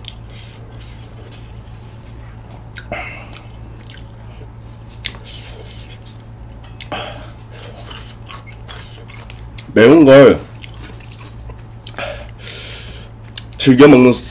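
A young man chews food wetly close to a microphone.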